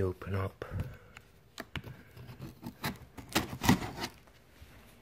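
A knife slices through packing tape on a cardboard box.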